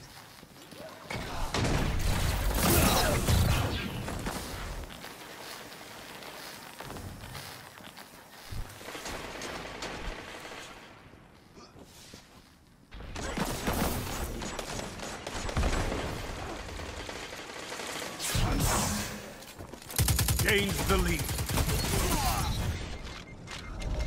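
Gunfire crackles in rapid bursts with sharp electronic zaps.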